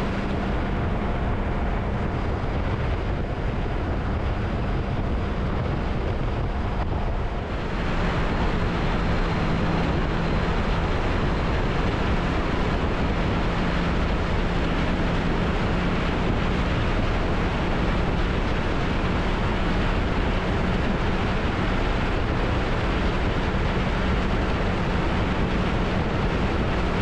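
Wind roars loudly past a fast-moving motorcycle.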